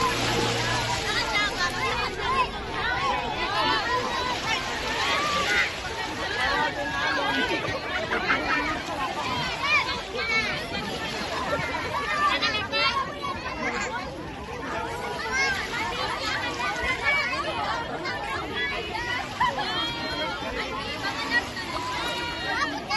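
A crowd of men, women and children talk and shout excitedly outdoors.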